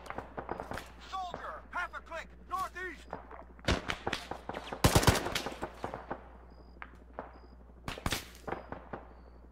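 Gunshots crack in quick bursts, echoing outdoors.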